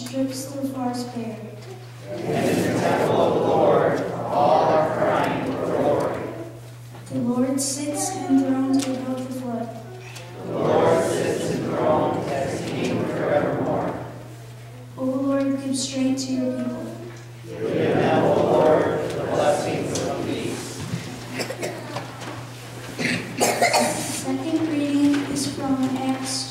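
A young girl reads aloud into a microphone in an echoing room.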